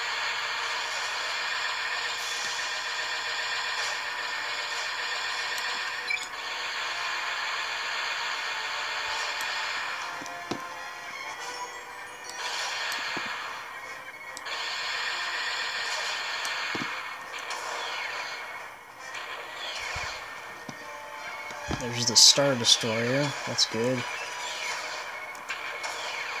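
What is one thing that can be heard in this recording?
Laser cannons fire in rapid bursts in a space shooter game.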